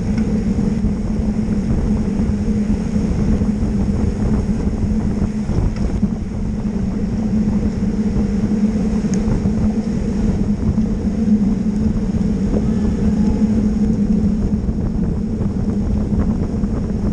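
Bicycle tyres hum steadily on smooth tarmac.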